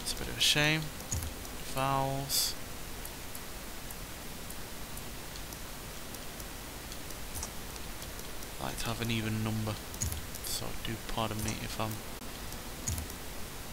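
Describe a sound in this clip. Short soft clicks sound as menu choices change.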